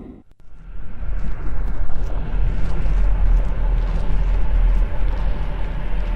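Magic spells crackle and strike in a fight.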